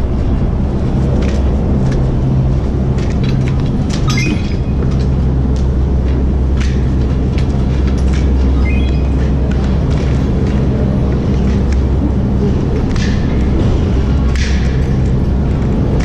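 Large machinery hums and rumbles steadily in an echoing hall.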